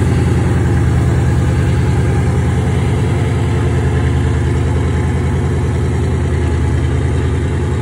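A muscle car's V8 engine idles with a deep, loping rumble close by.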